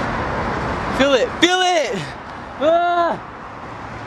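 A young man wails loudly in long, gliding cries close by.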